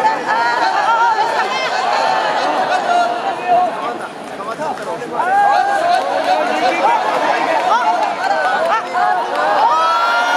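A sumo referee calls out in a high, chanting voice.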